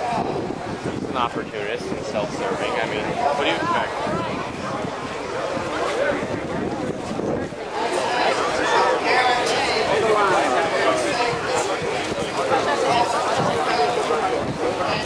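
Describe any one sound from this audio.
Nearby men and women talk loudly over the crowd.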